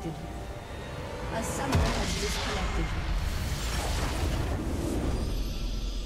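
Magic spell effects crackle and whoosh in a rush.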